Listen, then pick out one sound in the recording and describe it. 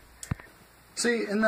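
A young boy makes a short vocal sound close by.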